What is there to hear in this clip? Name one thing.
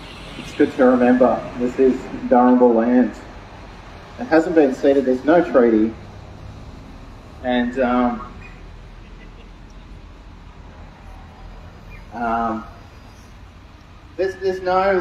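A young man speaks loudly into a microphone through a loudspeaker outdoors, in bursts with pauses.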